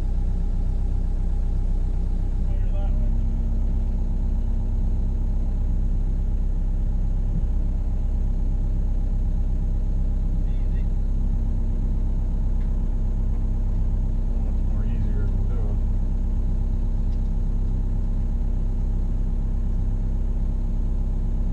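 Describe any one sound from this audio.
A diesel engine rumbles steadily close by, heard from inside a machine's cab.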